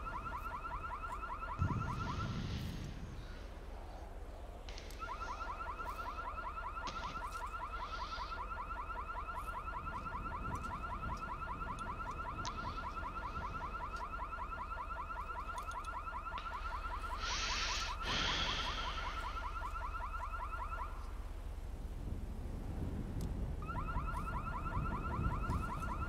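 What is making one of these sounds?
A car's warning chime dings rapidly and steadily.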